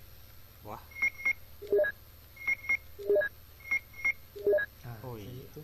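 Short electronic beeps sound as a menu cursor moves.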